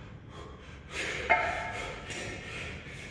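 Kettlebells clank down on a hard floor.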